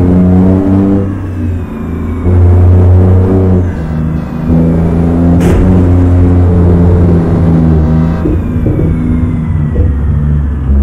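A heavy truck engine rumbles low and steady, rising and falling with the throttle.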